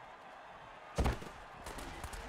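Players crash together in a heavy tackle.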